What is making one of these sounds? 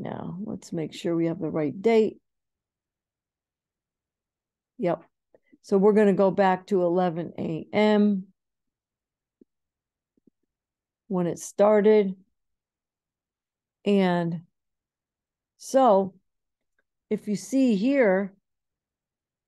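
A woman speaks calmly and closely into a microphone, in short phrases with pauses.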